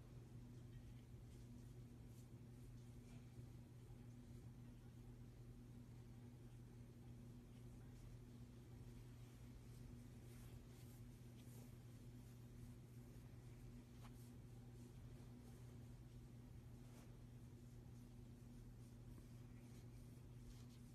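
A cat purrs steadily and loudly up close.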